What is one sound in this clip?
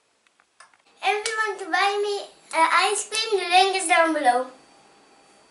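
A young girl sings clearly, close by.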